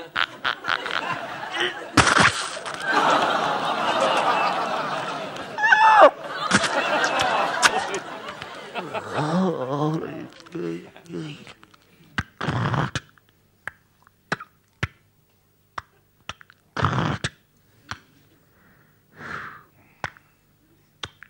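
A man beatboxes and makes vocal sound effects into a microphone.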